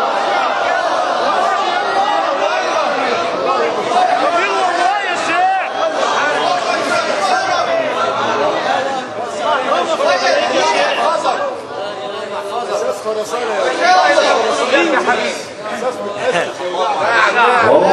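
A man chants in a melodic, drawn-out voice through a microphone.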